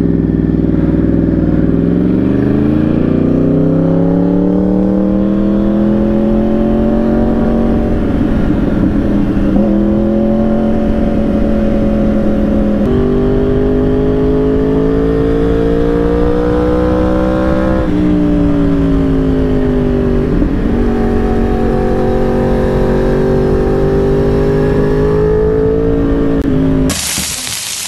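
Wind rushes past at speed.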